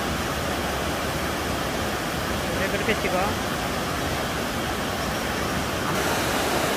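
Water rushes and roars steadily down a rocky waterfall into a pool.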